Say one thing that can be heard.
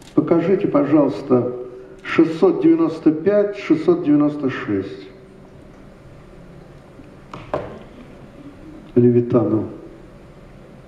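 An elderly man reads aloud calmly through a microphone in a large room.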